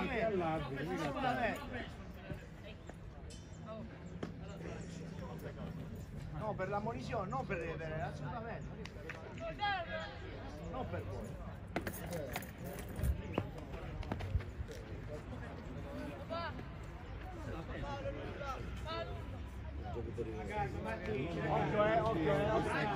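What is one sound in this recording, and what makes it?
Young men talk and call out across an outdoor field.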